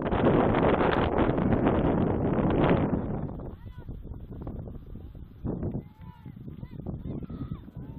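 Distant players shout across an open field.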